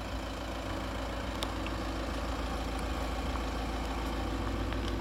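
A 1.9-litre four-cylinder turbodiesel car engine idles.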